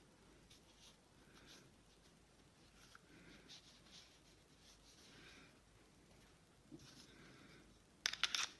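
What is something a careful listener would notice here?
A cloth rubs against a pistol.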